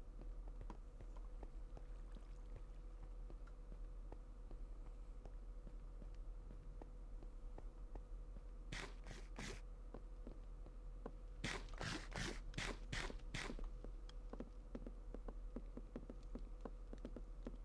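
Footsteps tap steadily on hard blocks.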